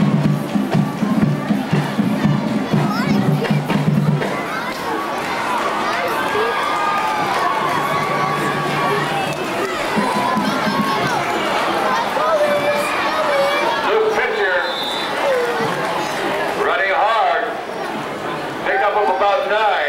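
A crowd cheers and shouts in a stadium.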